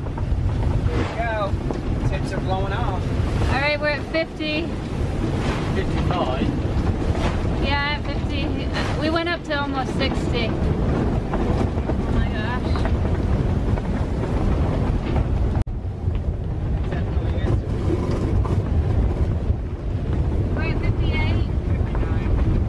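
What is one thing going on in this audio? Wind howls and whistles through a boat's rigging, rising and falling in pitch.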